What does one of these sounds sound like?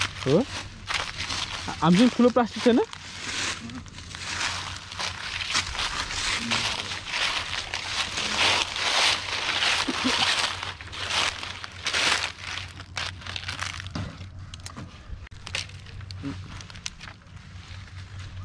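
Dry leaves crunch and rustle underfoot.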